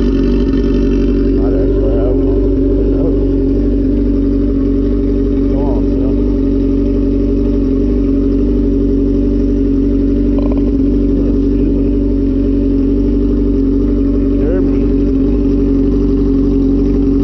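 A motorcycle engine idles loudly and steadily close by.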